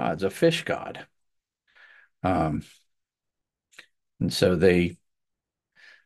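A man speaks calmly into a close microphone, as if reading out.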